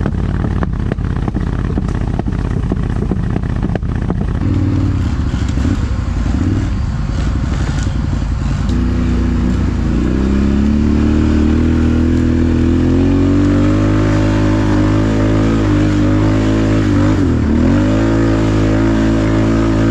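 A quad bike engine rumbles and revs close by.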